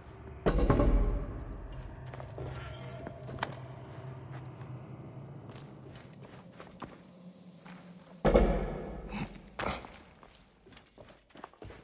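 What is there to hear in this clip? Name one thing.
Footsteps thud and clatter across loose wooden planks.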